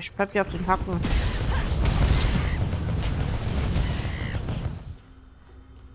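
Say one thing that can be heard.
Video game spells of fire and lightning crackle and roar.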